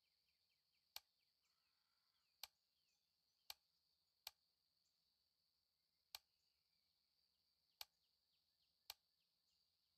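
Short soft menu clicks sound one at a time.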